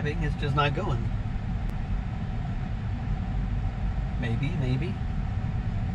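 A car rolls slowly along a road with a low hum.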